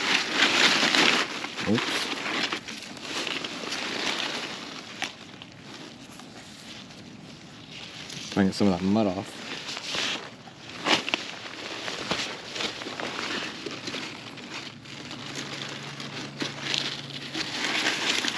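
A knife cuts through a squash stem.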